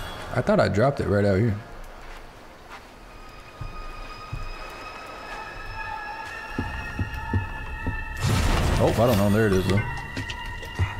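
A man talks through a headset microphone.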